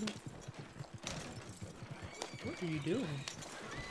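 A horse-drawn wagon rattles along over rough ground.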